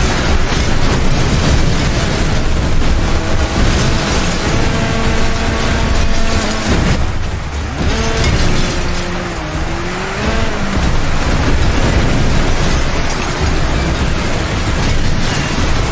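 A car engine roars and revs hard.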